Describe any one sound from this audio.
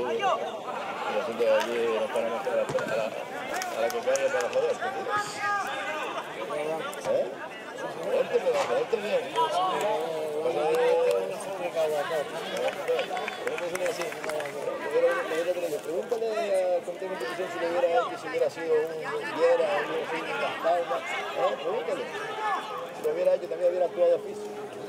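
Young men shout and call to each other across an open field.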